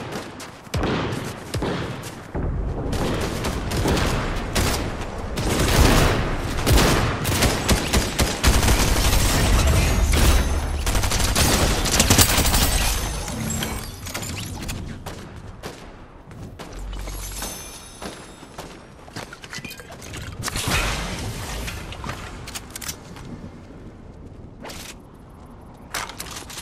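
Footsteps patter quickly on grass and pavement in a video game.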